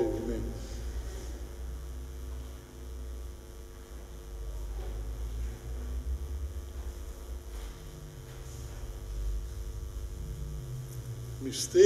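A man speaks quietly into a microphone in an echoing room.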